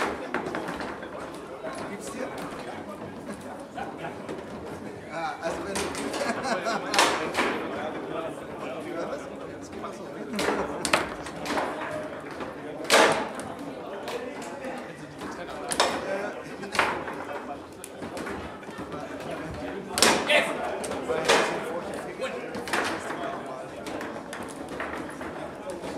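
Foosball rods rattle and thud as players spin and slide them.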